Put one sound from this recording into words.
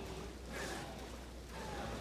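A curved blade swooshes through the air.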